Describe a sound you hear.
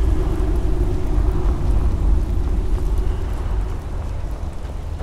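Footsteps crunch steadily over dirt and gravel.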